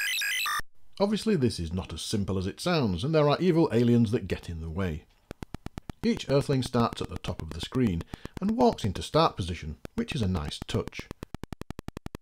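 A bleeping electronic melody plays from a retro video game.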